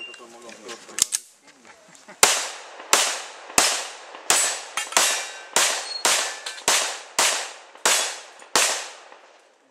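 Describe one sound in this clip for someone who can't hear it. Pistol shots crack in rapid succession outdoors.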